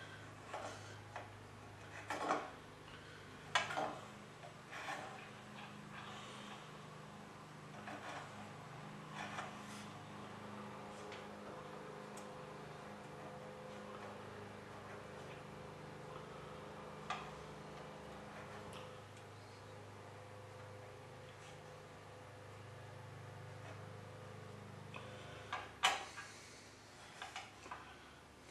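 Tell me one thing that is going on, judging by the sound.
Small metal blocks click and tap against each other on a hard surface.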